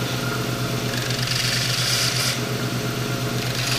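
A belt sander grinds against a metal block with a hiss.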